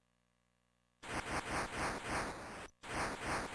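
Electronic arcade game sound effects blare in quick bursts.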